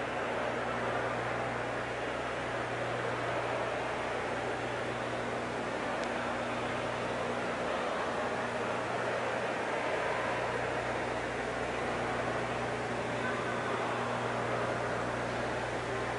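A large crowd chatters and murmurs nearby.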